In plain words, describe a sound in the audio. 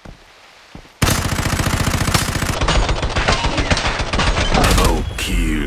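A rifle fires in rapid bursts, loud and close.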